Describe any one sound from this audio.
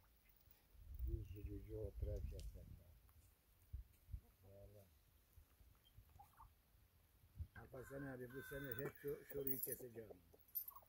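A turkey gobbles loudly, with a rapid rattling call.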